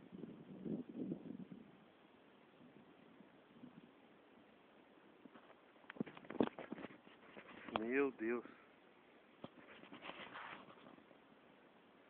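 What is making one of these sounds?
Dry leaves rustle and crackle as a snake slides over them.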